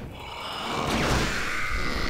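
An explosion bursts with a dull boom.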